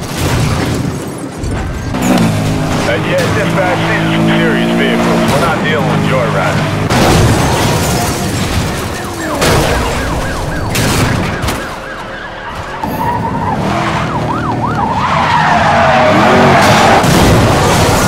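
Cars crash with loud metallic impacts.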